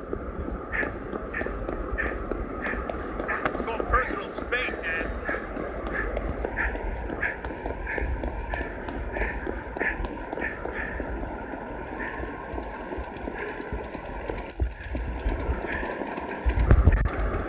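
Footsteps run quickly and evenly on pavement.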